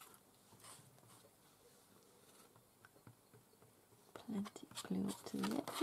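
A brush dabs and spreads glue across paper.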